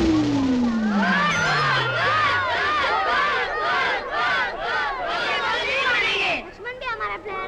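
A group of children cheer and shout excitedly.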